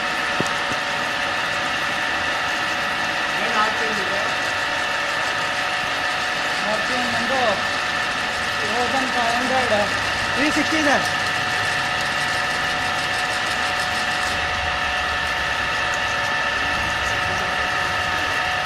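A drill bit grinds into metal.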